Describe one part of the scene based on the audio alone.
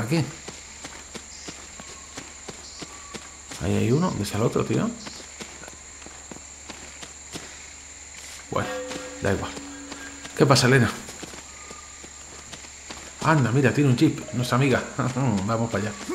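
Footsteps patter on grass and dirt.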